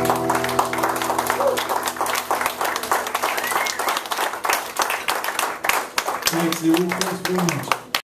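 An acoustic guitar is strummed through a loudspeaker.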